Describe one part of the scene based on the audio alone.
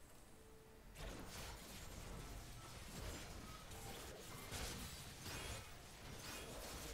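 Video game battle effects clash and burst rapidly.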